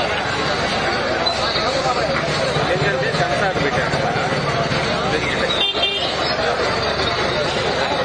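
A crowd of men murmurs and chatters nearby outdoors.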